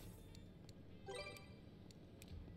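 A slot machine game jingles with a short rising chime.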